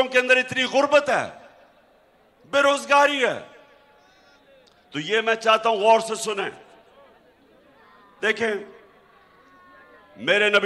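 A man gives a speech with forceful emphasis through a microphone and loudspeakers, in short bursts with pauses.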